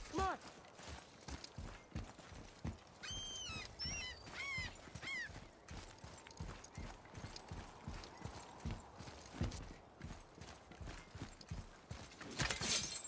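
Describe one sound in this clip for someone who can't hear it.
Heavy footsteps thud steadily on stone.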